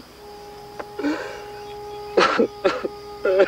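A man sobs and cries out in grief nearby.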